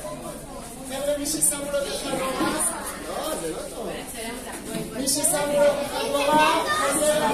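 A child speaks loudly close by.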